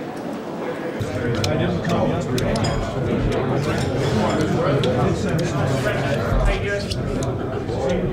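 A crowd of men talk and laugh close by.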